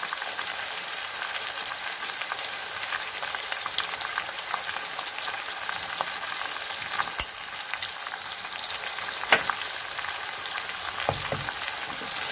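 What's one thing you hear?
Chicken sizzles steadily in a hot pan.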